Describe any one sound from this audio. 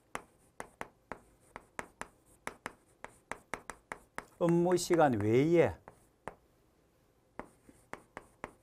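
Chalk taps and scratches on a board in quick strokes.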